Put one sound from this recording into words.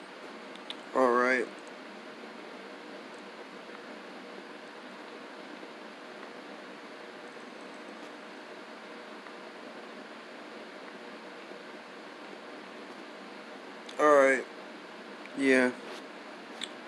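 A young man speaks a few short words close to the microphone.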